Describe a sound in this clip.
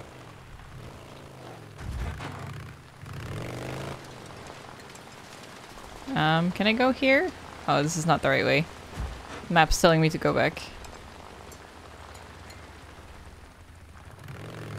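A motorbike engine hums as it climbs a rough trail.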